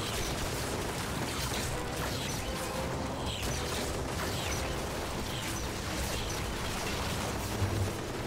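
Machine gun fire rattles in the game.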